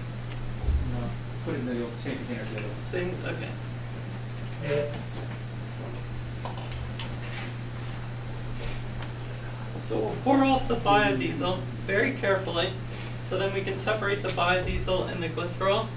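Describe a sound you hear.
A young man speaks to a room in a moderately echoing space.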